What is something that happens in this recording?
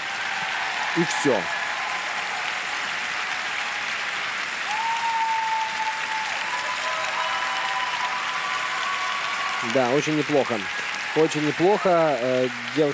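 A large crowd cheers and applauds in a big echoing arena.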